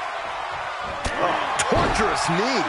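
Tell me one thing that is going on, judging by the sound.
A kick lands with a sharp thud.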